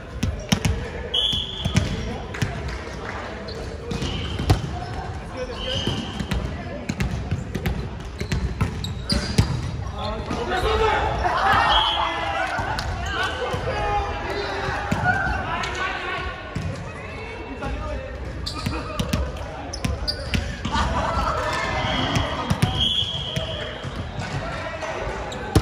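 A volleyball thumps off players' arms and hands in a large echoing gym.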